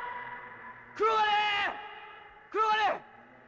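Another young man shouts urgently.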